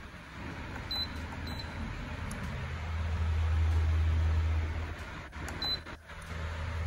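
A heater's control panel beeps briefly as its buttons are pressed.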